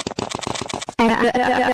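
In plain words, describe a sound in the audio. A woman shouts angrily.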